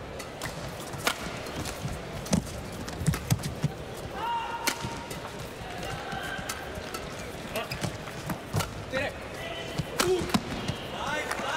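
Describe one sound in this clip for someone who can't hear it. Rackets smack a shuttlecock back and forth in a fast rally.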